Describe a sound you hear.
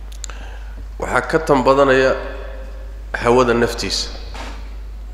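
A man speaks calmly into a microphone, in short phrases.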